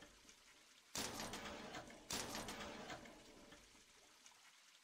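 A vending machine clatters as items drop out, twice.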